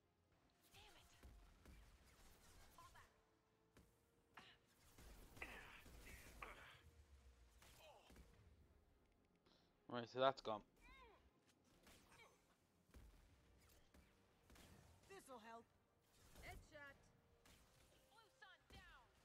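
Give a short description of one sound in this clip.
Gunfire bursts and energy weapons crackle in a game battle.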